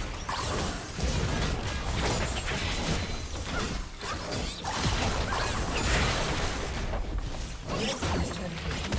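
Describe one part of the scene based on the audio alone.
Spell effects and attacks clash and burst in a game fight.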